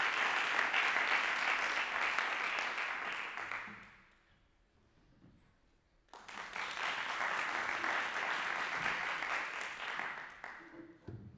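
An audience applauds loudly in a large hall, stopping and starting again.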